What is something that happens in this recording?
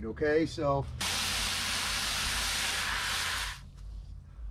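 Water pours into a plastic bucket.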